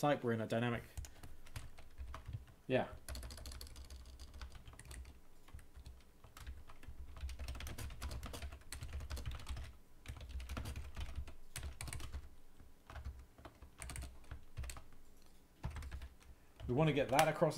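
Keyboard keys clatter in quick bursts.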